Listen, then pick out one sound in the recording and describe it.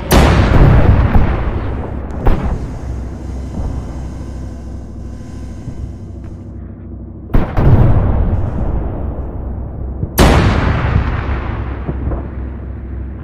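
Loud explosions boom and rumble away.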